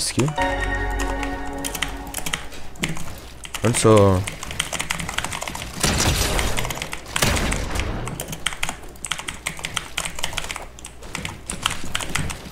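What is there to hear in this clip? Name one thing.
Wooden building pieces snap into place in quick clicks.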